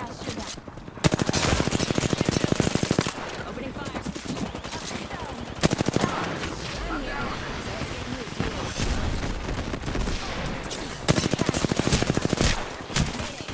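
A rifle fires rapid bursts of automatic gunfire.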